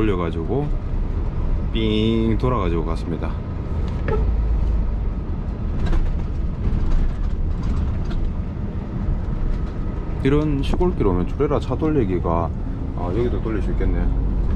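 A heavy truck engine rumbles steadily while driving.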